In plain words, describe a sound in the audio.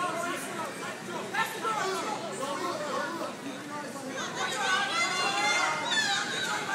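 Several men shout and call out nearby in a large echoing hall.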